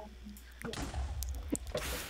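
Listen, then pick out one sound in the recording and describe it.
Blocks crack and break with short crunching thuds.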